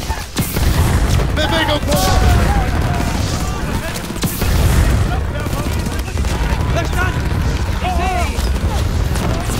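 A flamethrower roars in loud, rushing bursts.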